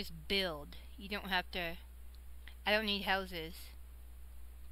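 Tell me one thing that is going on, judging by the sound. A young woman speaks close to a microphone in a quick, animated voice.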